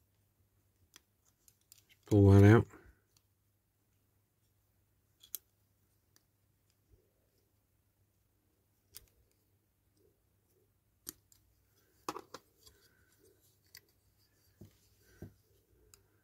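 A small screwdriver pries and clicks against a plastic model car body.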